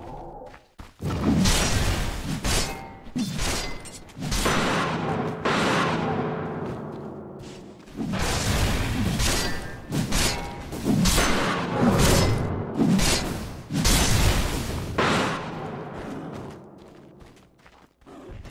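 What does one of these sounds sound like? Magic spells burst and whoosh during a fantasy battle.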